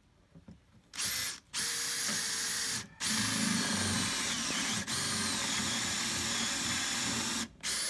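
A cordless drill whirs loudly, boring into a board.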